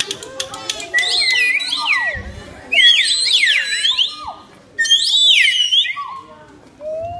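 A group of children make high, swooping siren-like sounds with their voices.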